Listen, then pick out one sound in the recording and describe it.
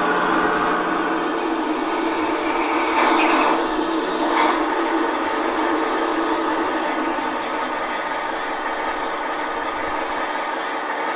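A model locomotive rolls along metal track with a steady rumbling whir.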